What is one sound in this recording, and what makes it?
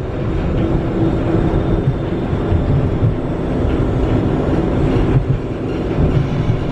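A tram's carriage rattles and clunks over the rails.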